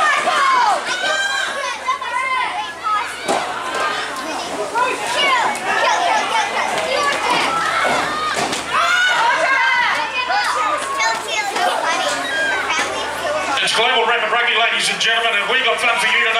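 Young girls shout and call out excitedly nearby.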